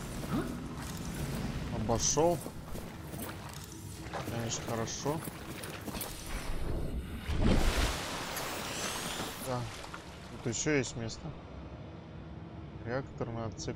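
Water splashes and sloshes as someone swims through it.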